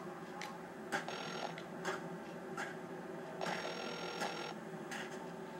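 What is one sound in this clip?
A phone line rings.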